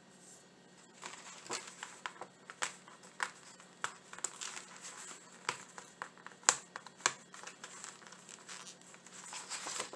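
Hands rustle and crinkle a sheet of paper.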